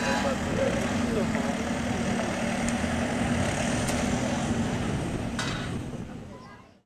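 A rally car engine rumbles loudly as the car drives slowly past.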